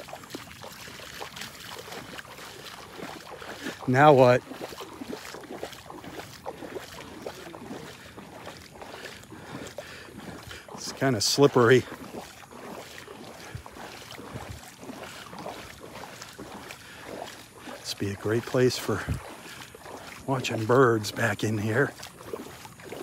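Small waves lap gently at a shore.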